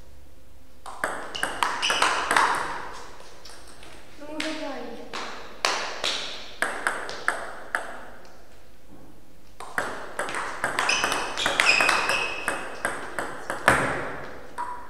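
A table tennis ball clicks back and forth between paddles and the table in a large echoing room.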